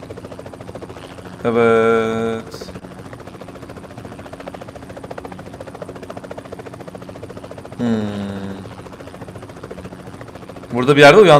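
A helicopter's rotor chops steadily.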